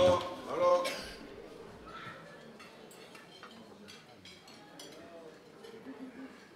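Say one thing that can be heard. A crowd of people murmurs and chatters quietly.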